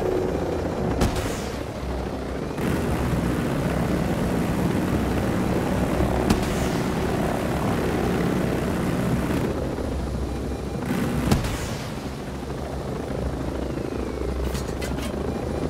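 Missiles whoosh away from a helicopter.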